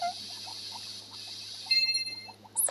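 Water runs from a tap with a steady hiss.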